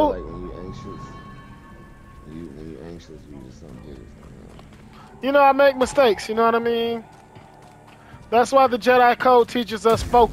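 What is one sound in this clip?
Footsteps run over dirt and stone.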